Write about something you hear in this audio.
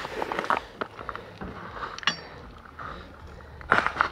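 Loose stones crunch and scrape as they are moved by hand.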